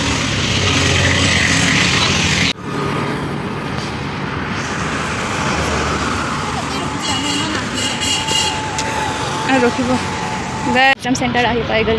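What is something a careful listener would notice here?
Traffic hums along a road outdoors.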